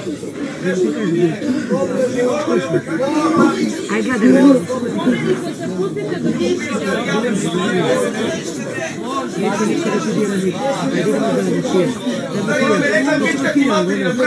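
Several young adults talk and murmur over one another close by.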